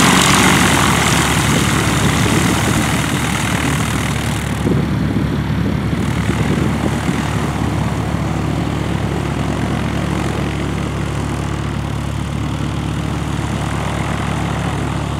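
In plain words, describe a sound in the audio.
A propeller plane's engine drones loudly nearby and gradually fades as it taxis away.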